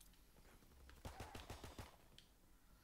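Gunshots ring out in rapid succession.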